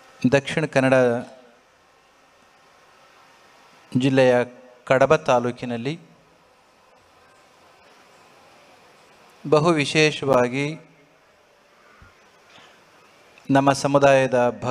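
A middle-aged man speaks calmly into a microphone in short phrases, with pauses between them.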